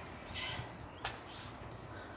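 A skipping rope slaps once against hard ground.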